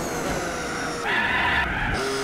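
Tyres squeal through a corner.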